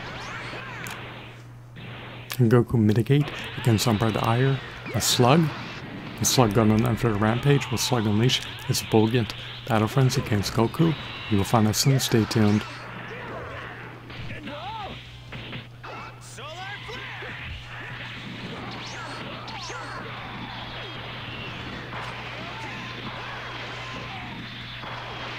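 Game blasts and hits crackle and boom.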